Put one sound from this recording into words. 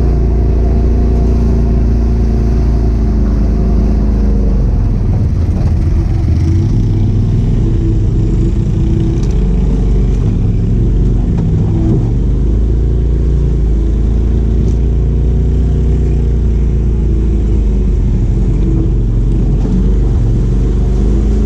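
Tyres crunch over a muddy dirt trail.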